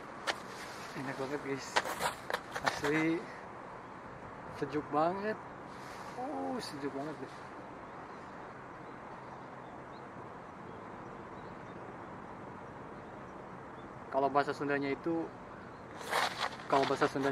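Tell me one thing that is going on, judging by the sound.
A young man speaks calmly close by, slightly muffled.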